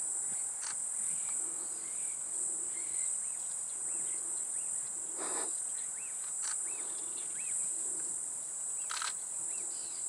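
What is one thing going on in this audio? An elephant tugs at the branches of a tree, making the leaves rustle and twigs snap.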